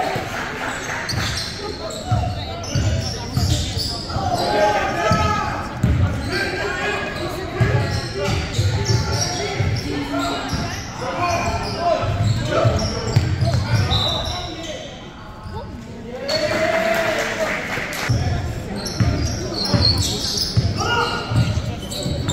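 Young men shout and call out to each other.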